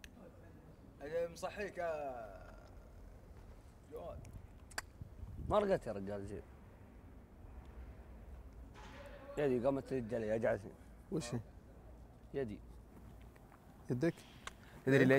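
Young men talk casually outdoors, close by.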